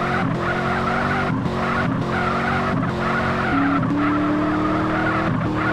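A car engine revs hard, its pitch dropping briefly at each gear change.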